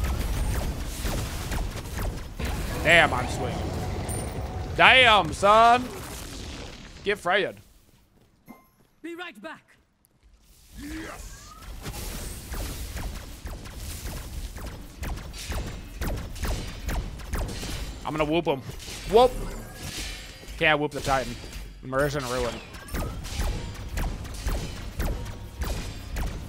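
Video game battle sounds clash and crackle.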